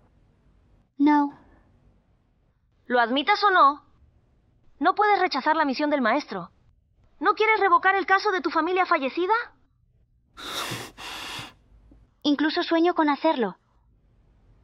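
A young woman answers calmly close by.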